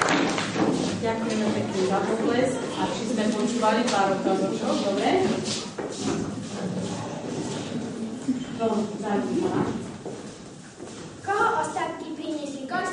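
A girl speaks aloud.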